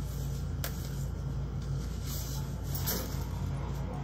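Leafy stems rustle as a hand sets them down.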